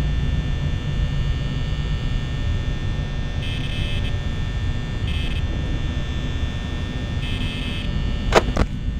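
A desk fan whirs steadily.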